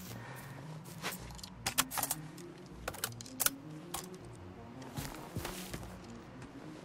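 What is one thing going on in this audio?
A rifle clatters and clicks as it is reloaded.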